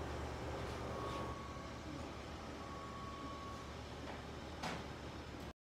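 A printer hums steadily nearby.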